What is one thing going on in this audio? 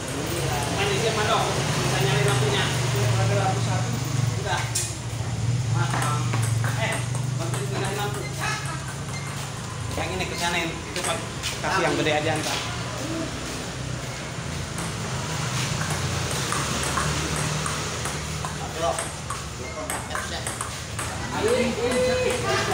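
A ping pong ball clicks sharply back and forth on paddles and a table.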